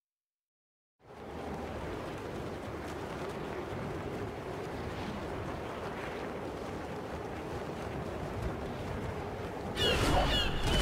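Wind rushes steadily past a skydiver falling through the air.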